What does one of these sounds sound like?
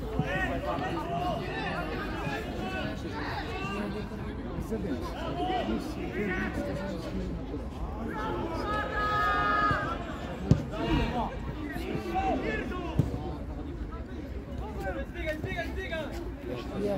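Young players shout and call to each other from across an open field.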